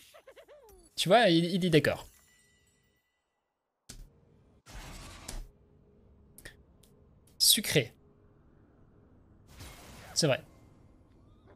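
A young man speaks with animation into a nearby microphone, in short bursts.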